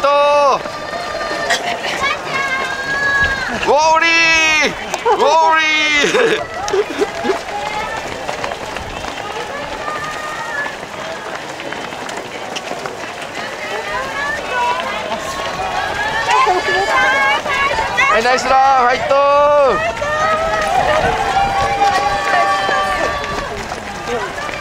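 A crowd of spectators cheers and shouts encouragement nearby, outdoors.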